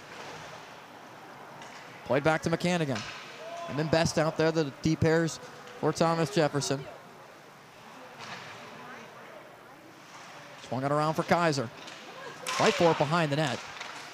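Ice skates scrape and hiss on ice.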